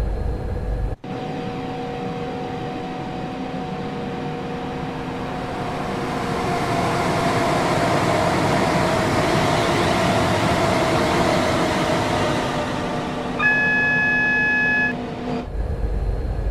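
A train approaches and rushes past on the tracks, growing steadily louder.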